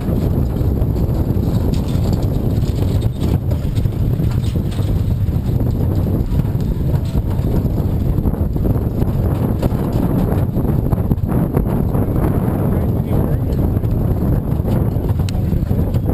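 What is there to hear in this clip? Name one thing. A wagon rattles and clatters while moving fast.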